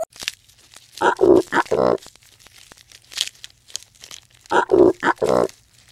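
A giraffe gives short, rough grunting calls.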